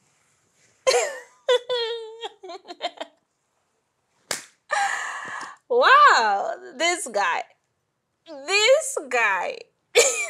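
A second young woman answers calmly close by.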